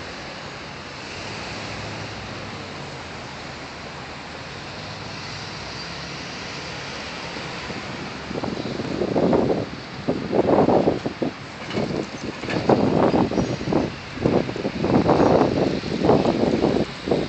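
Light traffic hums softly nearby outdoors.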